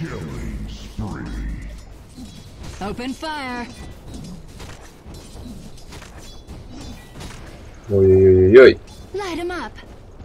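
Weapons clash and strike during a skirmish.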